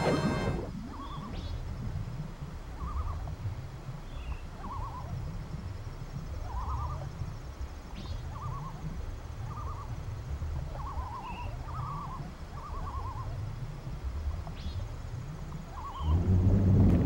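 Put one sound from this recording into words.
Soft splashing swim strokes repeat about once a second in a game.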